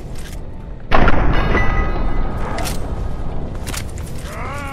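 A heavy gun fires a blast.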